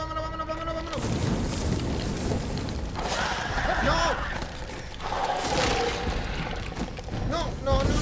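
Fire roars from a flamethrower in bursts.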